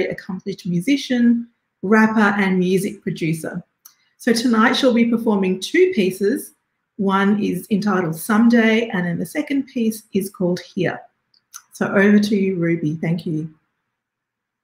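A woman speaks warmly and with animation over an online call.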